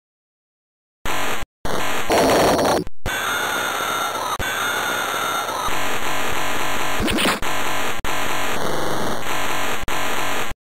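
Upbeat chiptune music plays loudly.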